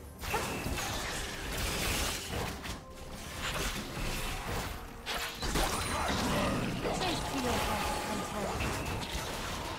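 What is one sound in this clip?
Magical blasts whoosh and crackle in a fast fight.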